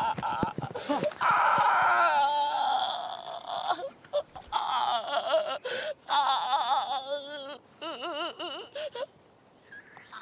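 A man screams in pain, long and loud.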